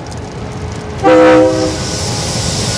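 A train horn blares loudly.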